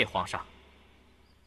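A man speaks firmly and loudly, close by.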